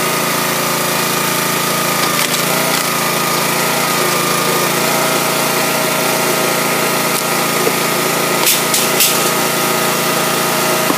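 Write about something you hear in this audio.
A hydraulic log splitter's petrol engine runs steadily.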